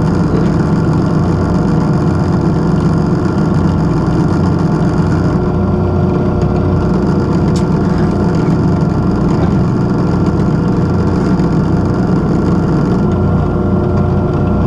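A drill bit grinds into metal.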